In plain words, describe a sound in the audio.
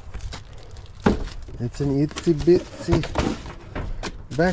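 A cardboard box knocks and scrapes.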